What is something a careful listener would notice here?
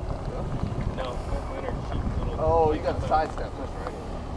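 A man calls out from nearby outdoors.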